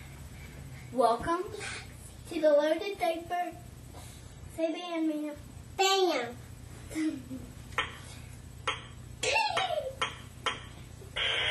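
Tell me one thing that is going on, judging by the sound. Young children shout and sing loudly nearby.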